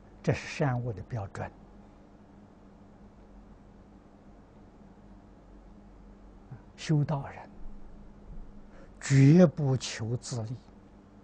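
An elderly man speaks calmly into a microphone, with long pauses.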